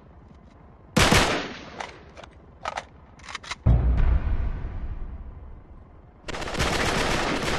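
Heavy gunfire and blasts boom and echo.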